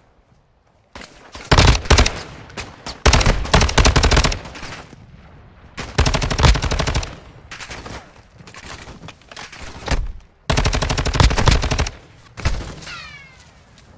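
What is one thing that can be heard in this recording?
Rapid gunfire bursts loudly in a video game.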